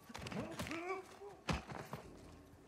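A heavy punch lands with a thud.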